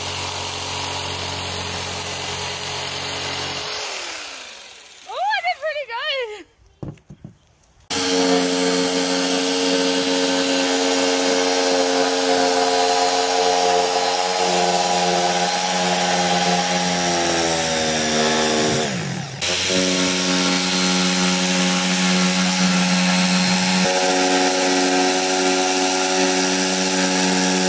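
An electric jigsaw whines steadily as it cuts through wood board.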